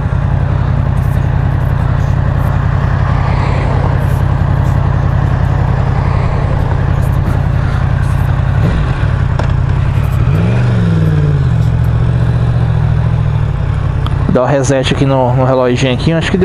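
A motorcycle engine rumbles close by at a steady idle.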